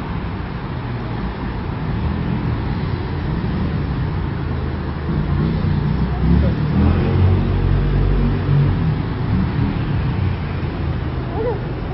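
Light car traffic hums and rolls by on a multi-lane road below.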